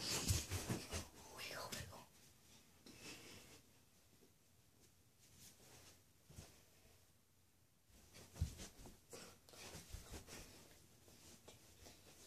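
Feet shuffle and thump on a carpeted floor.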